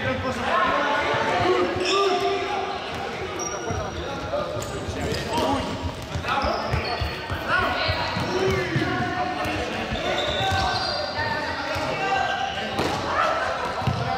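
Several young men call out and talk in a large echoing hall.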